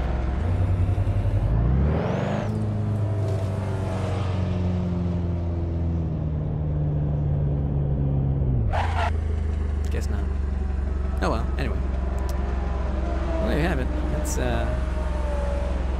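Tyres skid and screech on asphalt.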